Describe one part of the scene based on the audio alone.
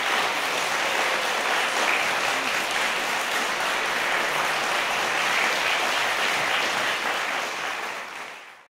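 An audience applauds steadily in a large echoing hall, fading out at the end.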